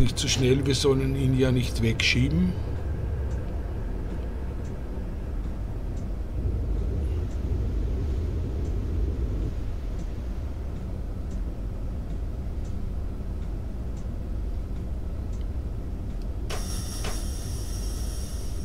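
A train rumbles low and steadily as it runs along the track.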